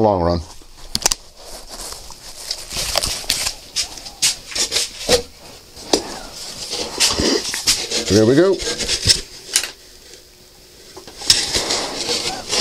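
A man breathes loudly through a respirator mask.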